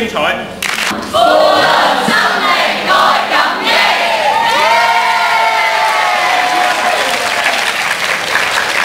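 A large crowd of young people cheers and shouts loudly in an echoing hall.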